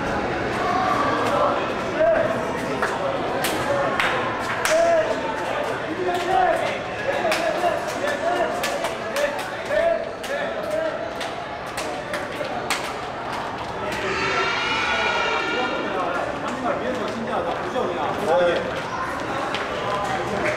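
Several young men talk and call out in an echoing corridor.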